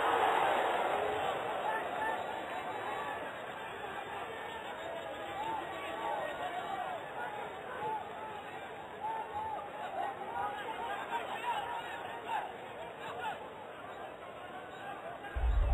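A stadium crowd cheers and roars steadily, louder at first.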